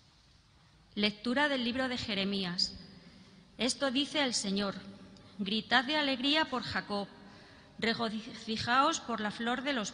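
A woman speaks steadily through a microphone in a large echoing hall.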